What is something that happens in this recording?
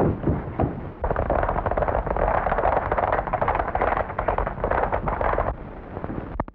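Horses gallop quickly along a dirt track.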